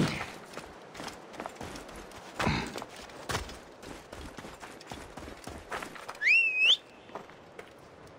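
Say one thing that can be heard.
Footsteps crunch on sand as a man runs.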